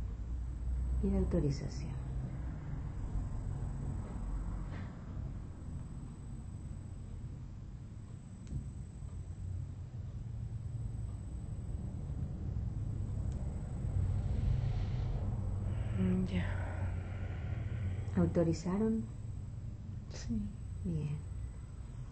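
A middle-aged woman sighs and murmurs softly close by.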